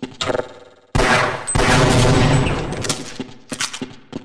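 An explosion booms loudly and rumbles away.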